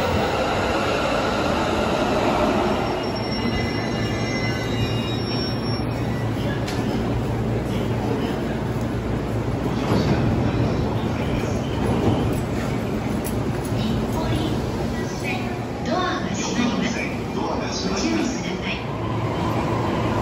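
A train hums at a platform.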